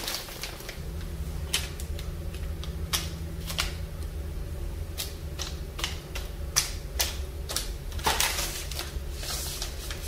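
Small plastic packets rustle and tap as a hand moves them.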